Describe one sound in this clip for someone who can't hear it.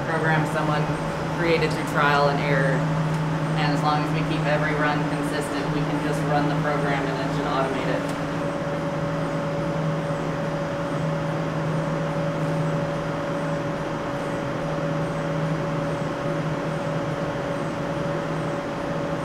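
Machinery hums steadily.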